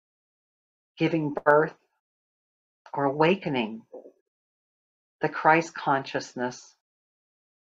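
A middle-aged woman speaks calmly over an online call, in short phrases with pauses.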